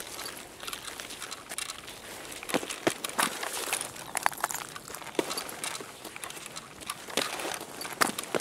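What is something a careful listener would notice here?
Footsteps scuff over a hard, littered floor.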